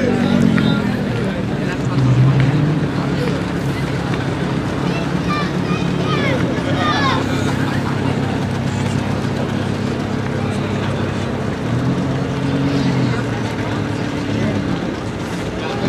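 An Audi R8 V10 idles with a deep rumble.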